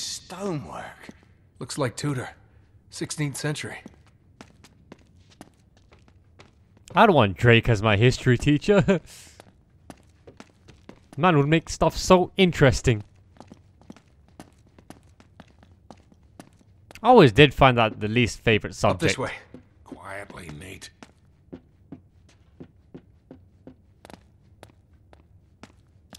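Soft footsteps tread on a stone floor.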